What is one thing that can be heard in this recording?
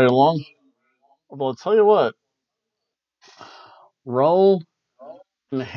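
A man talks calmly and close to a microphone, in short phrases.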